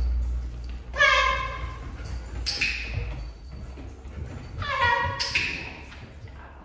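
A young woman calls out to dogs in a high, lively voice in an echoing room.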